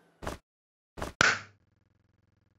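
A shoe smacks down hard on the floor.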